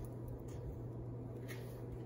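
Cards tap and slide on a hard surface.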